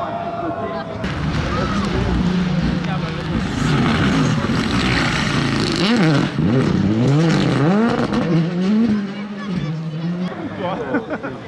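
Another rally car engine roars and revs through a corner.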